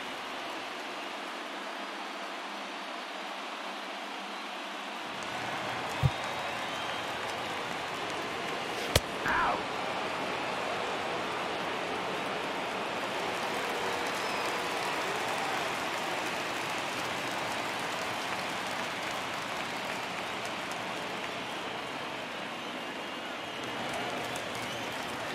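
A crowd murmurs and cheers in a large stadium.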